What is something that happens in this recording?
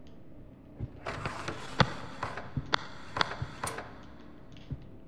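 A metal drawer scrapes open.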